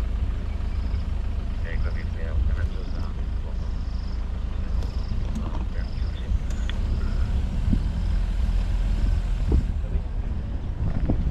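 A vehicle engine rumbles steadily as it drives slowly.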